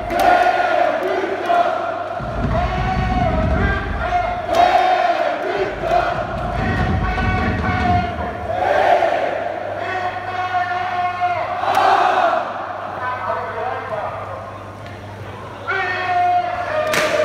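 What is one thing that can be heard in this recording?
A large crowd sings and chants loudly in a big echoing arena.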